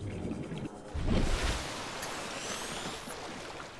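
Water splashes loudly as a swimmer breaks through the surface.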